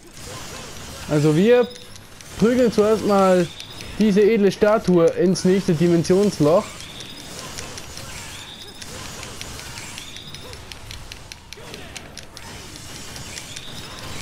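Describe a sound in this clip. Fiery blasts burst with a whoosh.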